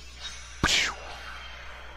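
A bright magical swoosh rings out.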